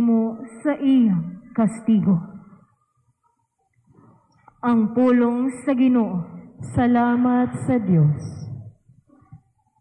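A young woman reads out slowly through a microphone, heard over a loudspeaker.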